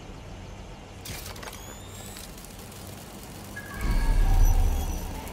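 A small robot's metal legs click and skitter across the ground.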